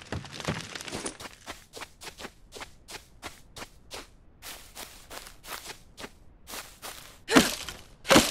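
Quick footsteps run over grass and undergrowth.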